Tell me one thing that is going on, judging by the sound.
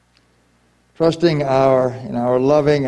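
A man chants in a loud, steady voice in a large echoing room.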